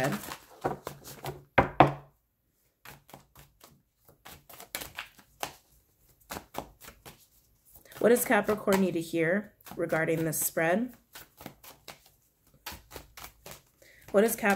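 Cards shuffle and tap together in quick bursts.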